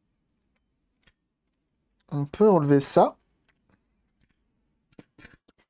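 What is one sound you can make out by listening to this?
Plastic parts of a handheld device click and tap together.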